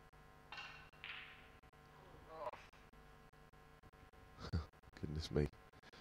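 Snooker balls knock together and roll across the table.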